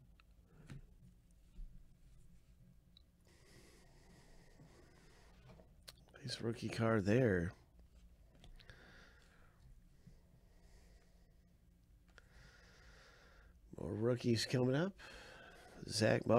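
Trading cards slide and rustle softly against each other.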